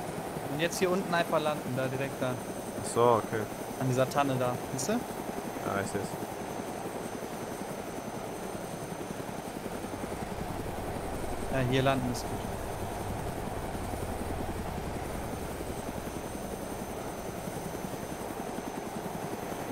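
A helicopter's rotor thumps steadily and its engine whines.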